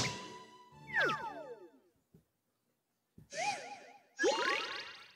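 Playful electronic sound effects sweep and chime in short bursts.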